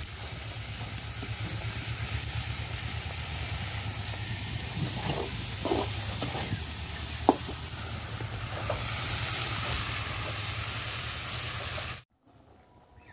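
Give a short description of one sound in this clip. Food sizzles in hot oil in a wok.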